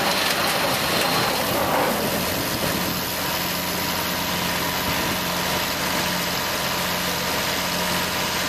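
A large harvester engine roars loudly and steadily close by.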